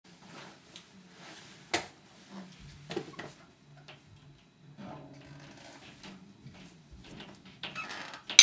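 Drums and cymbals are played in a loose, uneven rhythm close by.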